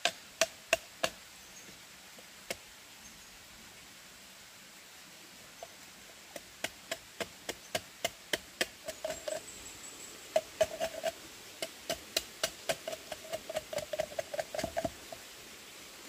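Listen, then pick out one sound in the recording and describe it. A machete chops into bamboo with quick, sharp knocks.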